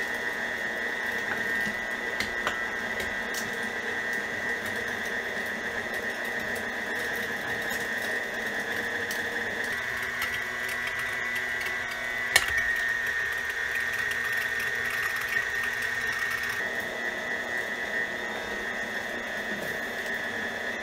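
An electric mixer motor hums and whines steadily while grinding meat.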